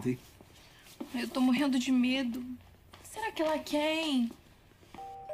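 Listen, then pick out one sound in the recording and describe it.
A young girl answers in a raised, agitated voice.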